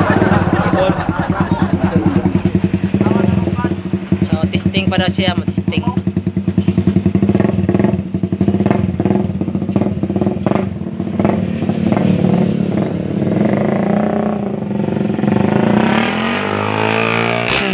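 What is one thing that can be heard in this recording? A motorcycle engine idles and revs loudly close by.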